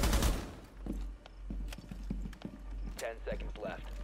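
A rifle magazine clicks as it is reloaded.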